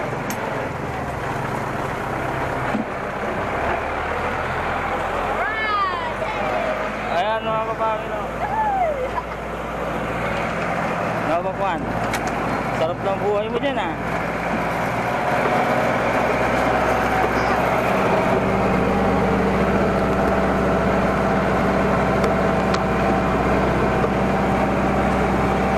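A small tractor engine rumbles steadily close by.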